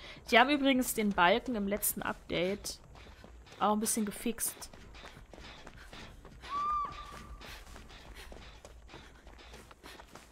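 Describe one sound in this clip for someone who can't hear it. Quick footsteps run through rustling grass.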